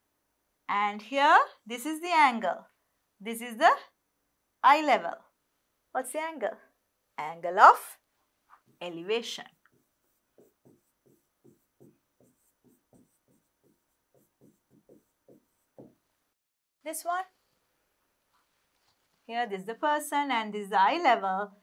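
A young woman speaks calmly and clearly into a microphone, in short phrases.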